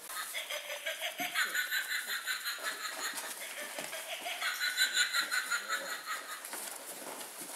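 Puppies whine and squeal in a rapid pulsing stream.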